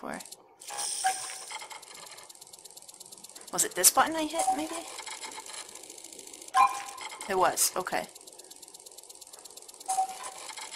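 A control panel beeps as buttons are pressed.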